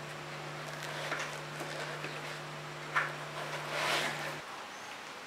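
A microphone is lifted out of foam padding with soft rustling.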